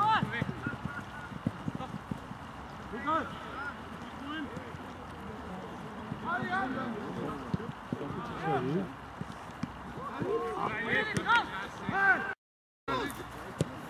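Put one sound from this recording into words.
A football is kicked with a thud.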